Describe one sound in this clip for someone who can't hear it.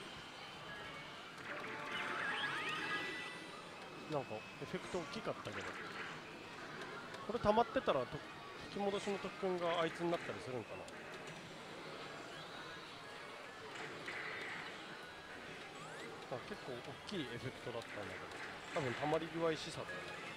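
A slot machine plays electronic jingles and effects.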